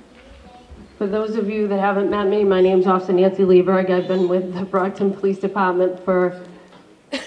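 A woman speaks clearly through a microphone and loudspeaker.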